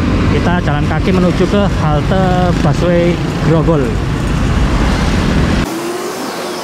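Motorbikes ride past close by with a buzzing engine rumble.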